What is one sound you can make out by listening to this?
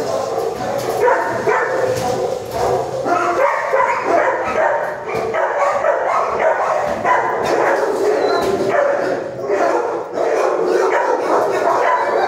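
Several dogs bark and howl loudly, echoing off hard walls.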